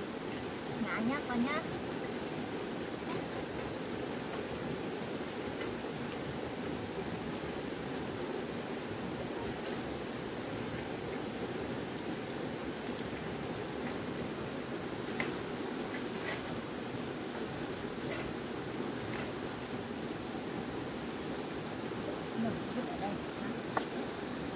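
Weeds are pulled from the soil with a soft rustle and tear.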